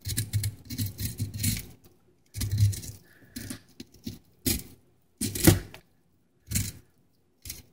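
A knife scrapes scales off a fish in short, rasping strokes.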